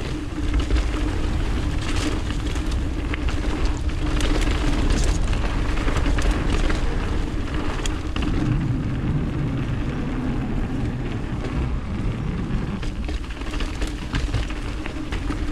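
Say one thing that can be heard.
Wind rumbles loudly against a moving microphone.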